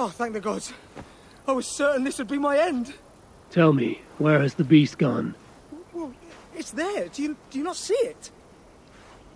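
A young man speaks anxiously and with relief, close by.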